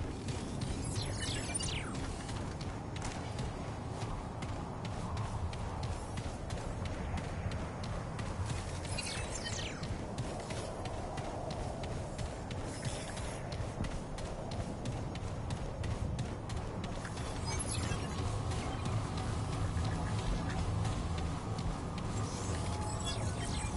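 Footsteps crunch quickly over loose, stony ground.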